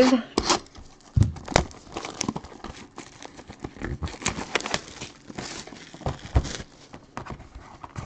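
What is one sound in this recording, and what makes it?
A cardboard box is handled and set down on a table with soft knocks.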